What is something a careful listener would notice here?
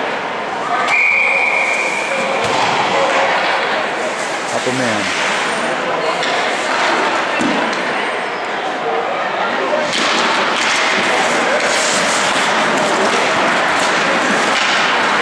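A crowd of spectators murmurs and chatters in the distance.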